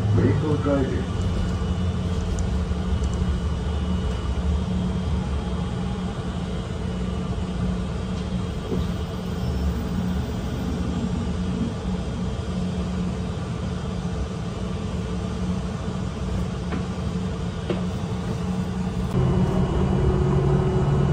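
A bus rattles and rumbles as it rolls along.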